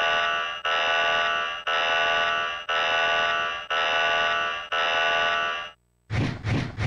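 A warning alarm blares in repeated pulses.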